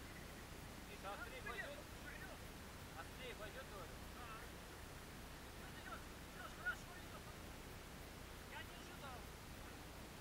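Adults talk and call out across the water from a nearby boat.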